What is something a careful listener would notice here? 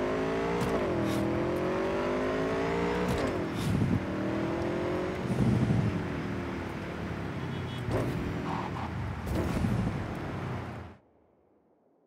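A motorcycle engine roars and revs up and down as it speeds along.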